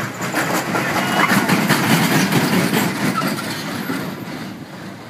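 A roller coaster rattles loudly along its track close by.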